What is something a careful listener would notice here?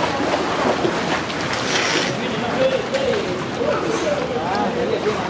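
Water splashes gently around a swimmer.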